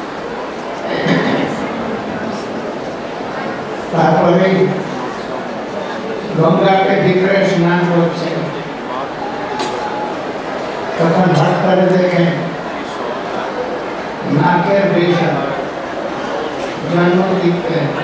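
An elderly man speaks slowly and calmly into a microphone, in bursts with pauses between them.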